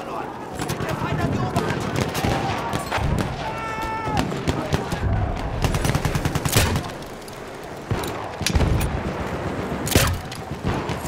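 Explosions boom low and heavy.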